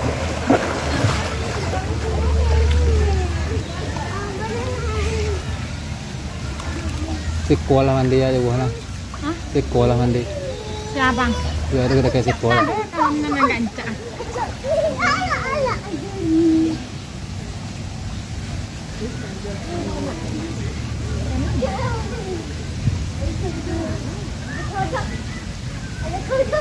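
Water splashes and sloshes as people wade through a pool.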